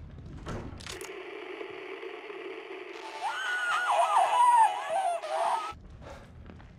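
A handheld radio crackles and plays a warbling signal.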